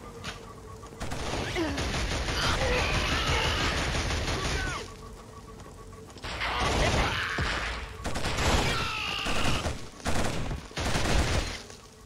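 An automatic rifle fires in rapid bursts of loud gunfire.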